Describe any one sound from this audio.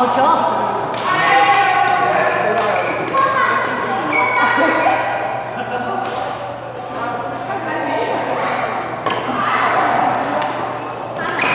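Adult men and women talk and call out across a court.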